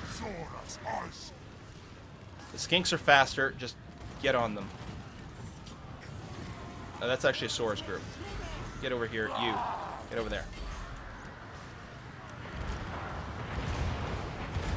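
Fiery blasts whoosh and crackle in a battle.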